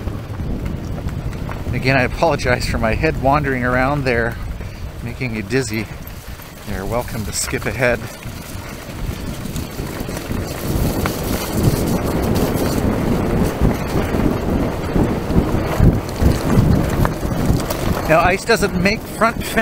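Bicycle tyres crunch and rattle over a gravel track.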